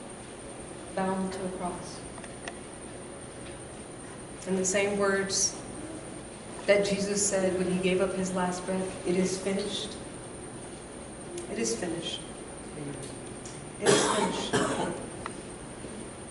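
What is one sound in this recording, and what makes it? A woman sings nearby in a room with some echo.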